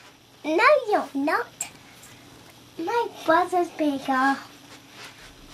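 A young girl talks in a high, lively voice close by.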